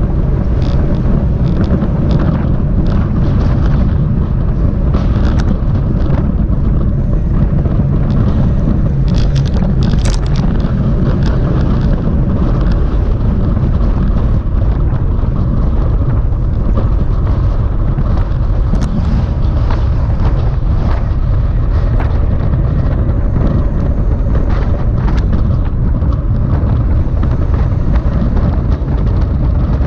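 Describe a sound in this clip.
Wind buffets loudly against a moving microphone outdoors.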